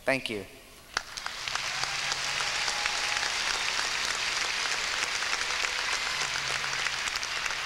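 A large crowd applauds steadily.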